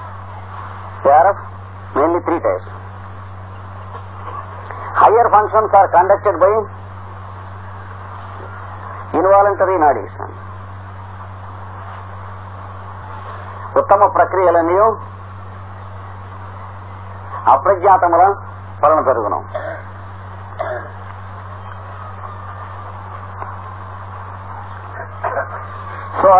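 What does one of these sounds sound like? An elderly man speaks in short bursts.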